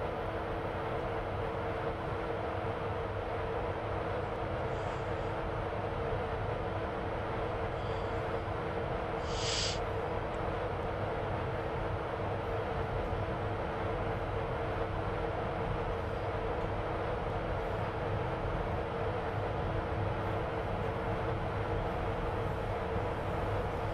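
An electric train's motors hum steadily as it runs along the track.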